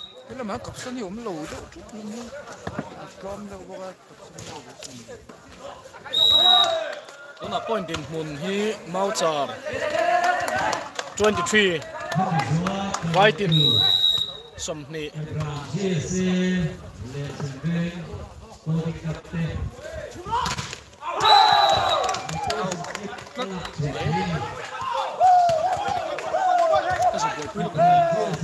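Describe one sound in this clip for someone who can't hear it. Young men shout and call out to one another outdoors.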